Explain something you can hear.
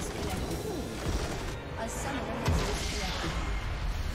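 A loud game explosion booms.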